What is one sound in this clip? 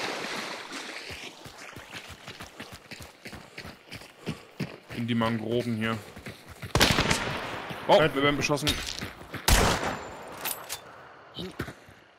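Footsteps crunch through dry grass and undergrowth.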